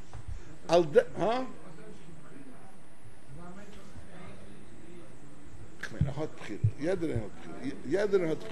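An elderly man speaks with animation into a microphone, with pauses.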